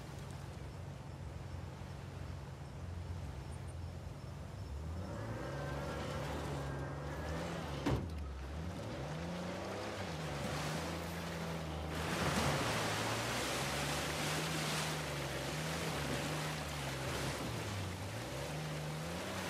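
A jeep engine hums and revs as it climbs over rocks.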